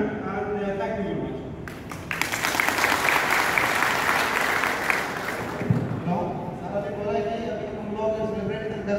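A man speaks loudly to a crowd in a large echoing hall.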